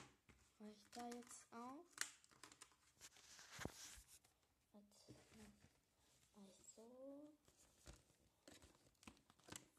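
Stiff cardboard rustles and taps as it is handled up close.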